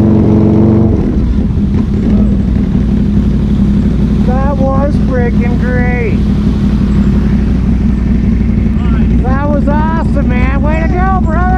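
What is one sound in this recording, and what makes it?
Quad bike engines drone steadily as they approach.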